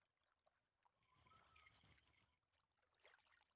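A fishing reel winds in line with a whirring rattle.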